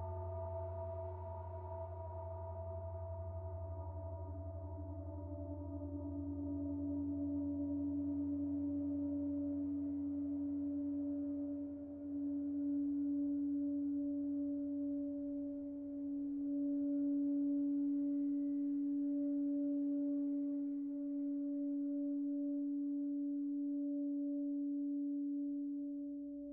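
A synthesizer drones with steady, slowly shifting tones.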